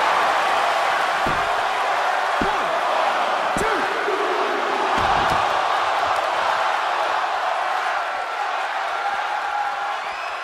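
A large crowd roars and cheers steadily in an arena.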